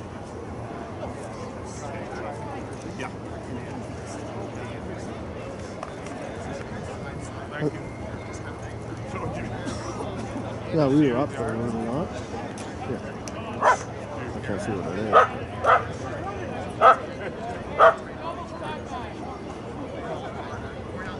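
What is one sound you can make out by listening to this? A group of young men shout in the distance outdoors.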